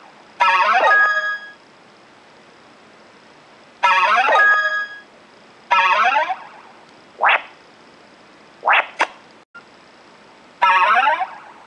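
Bright electronic game jingles chime in short bursts.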